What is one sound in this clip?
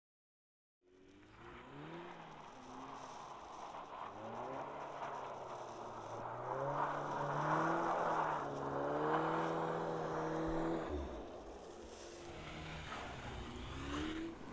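A car engine revs hard, rising and falling in pitch.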